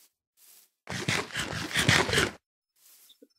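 An apple is crunched and chewed noisily.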